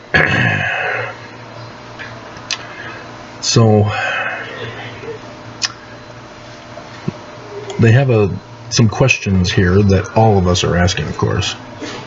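A middle-aged man speaks with animation, close to a laptop microphone.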